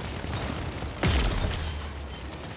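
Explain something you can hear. A powerful gun fires a single loud shot with a deep booming rumble.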